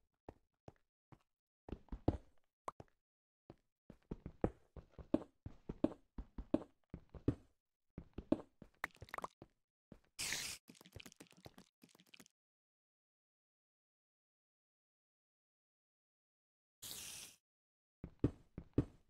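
Stone blocks crack and crumble under a pickaxe, in quick knocks.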